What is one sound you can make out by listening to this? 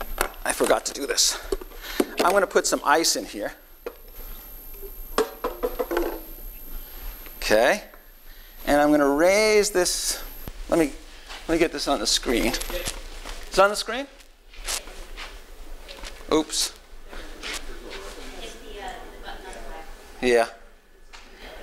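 An older man speaks with animation into a lapel microphone.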